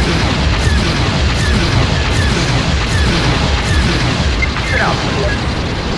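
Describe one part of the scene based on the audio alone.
A ship explodes with a loud rumbling blast.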